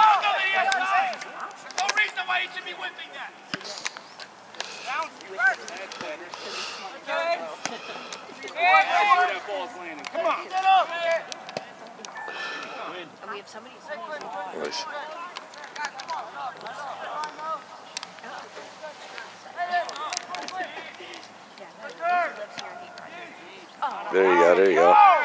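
Young players shout and call to each other outdoors across an open field.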